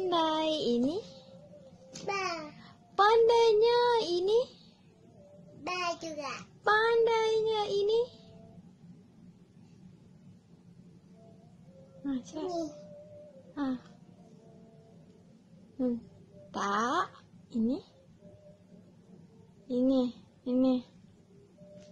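A young girl reads out syllables loudly and with animation, close by.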